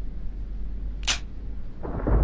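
A gun's hammer clicks on an empty chamber.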